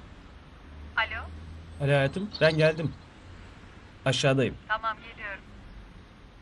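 A man talks into a mobile phone.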